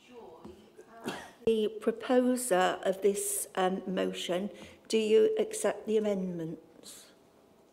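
An elderly woman speaks clearly into a microphone.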